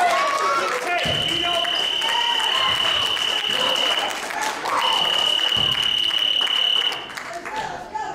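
A loud buzzer sounds in long blasts.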